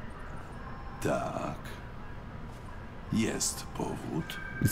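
An older man speaks in a gruff, low voice.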